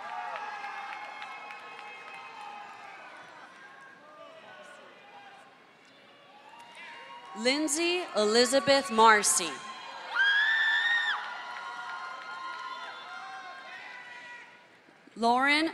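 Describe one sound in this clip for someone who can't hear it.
A crowd cheers in a large hall.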